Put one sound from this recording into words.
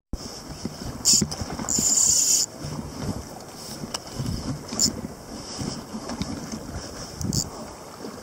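A fishing reel's drag buzzes as line is pulled out.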